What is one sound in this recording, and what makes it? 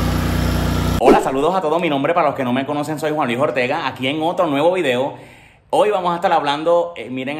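A young man talks with animation, close by.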